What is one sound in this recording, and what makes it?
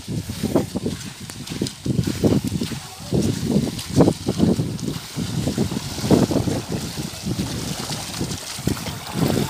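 Water trickles and flows steadily.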